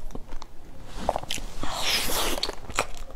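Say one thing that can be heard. A young woman gasps softly close to a microphone.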